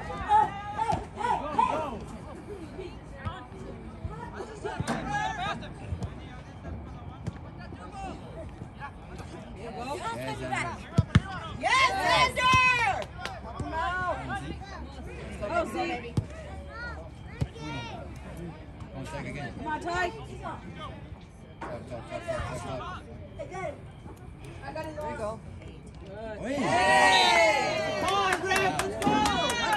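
Spectators shout and cheer loudly from the sidelines outdoors.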